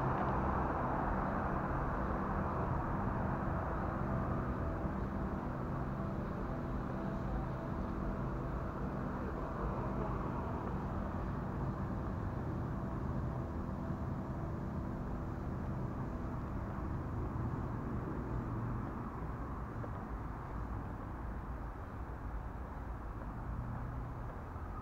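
Wind rumbles loudly and steadily outdoors.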